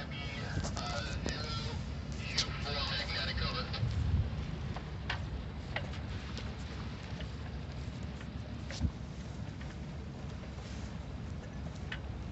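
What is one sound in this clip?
Waves splash and swish against a moving boat's hull.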